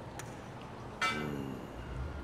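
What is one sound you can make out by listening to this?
A golf ball thumps against a target panel.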